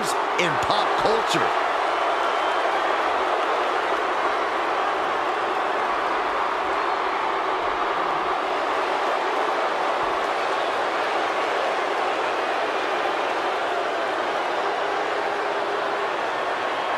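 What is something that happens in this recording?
A large crowd cheers and roars steadily in a big echoing arena.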